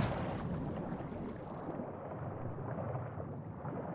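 Water gurgles with a muffled underwater sound.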